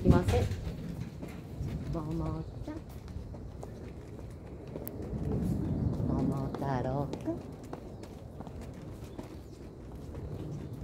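A small dog's paws patter softly on pavement.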